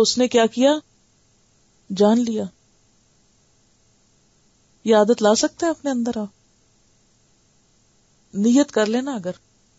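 A woman speaks calmly and clearly into a microphone, in short phrases with pauses.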